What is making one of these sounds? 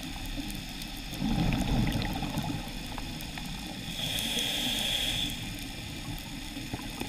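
A low, muffled underwater rumble goes on throughout.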